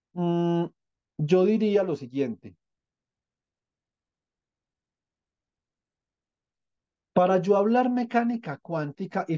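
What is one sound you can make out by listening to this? A young man speaks calmly over an online call.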